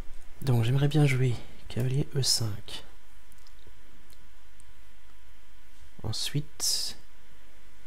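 A man speaks calmly into a close microphone.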